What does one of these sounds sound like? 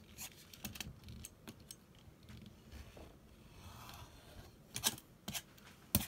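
A rotary cutter rolls and crunches through fabric.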